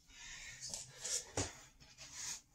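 Hands slap down onto a hard floor.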